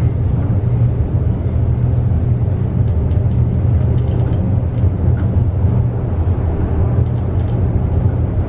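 An elevator car hums steadily as it moves between floors.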